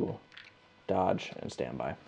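A plastic token is set down with a soft tap on a cloth mat.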